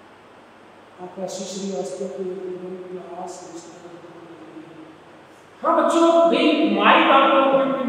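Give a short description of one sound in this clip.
A middle-aged man lectures with animation, close to a microphone.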